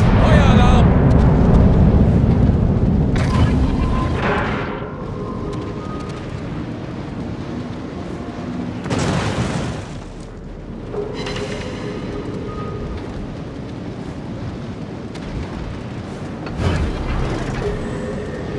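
Heavy naval guns boom in loud blasts.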